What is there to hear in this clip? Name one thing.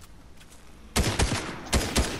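A gun fires loud, rapid bursts of shots.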